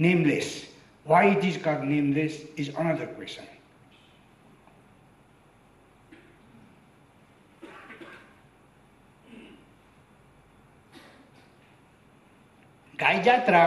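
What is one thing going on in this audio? An elderly man speaks slowly and deliberately into a microphone, with pauses.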